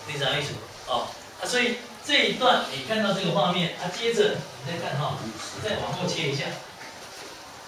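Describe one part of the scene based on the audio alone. A man speaks to an audience through a microphone in a large room.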